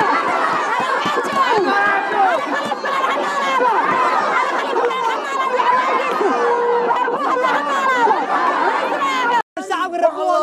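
A woman shouts passionately into a microphone.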